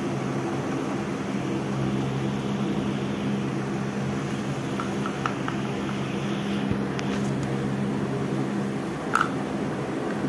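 A parrot knocks a plastic container against a hard floor.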